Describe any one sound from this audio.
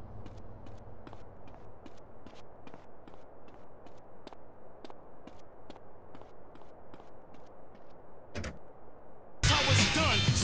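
Footsteps run quickly on hard pavement.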